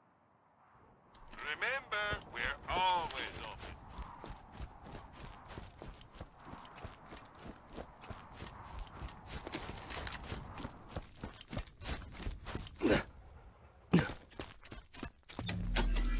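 Footsteps crunch along a dirt path.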